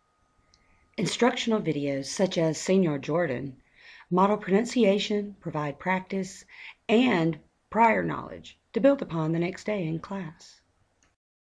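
A young man speaks clearly and with animation into a microphone, pausing between words.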